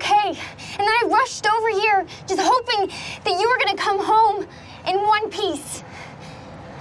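A young woman shouts angrily up close.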